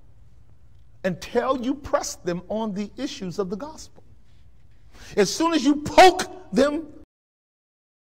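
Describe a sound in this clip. A man preaches with animation over a microphone in a large hall.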